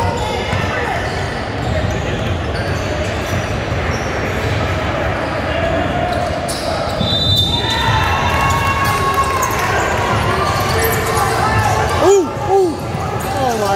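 Many people chatter and call out in a large echoing hall.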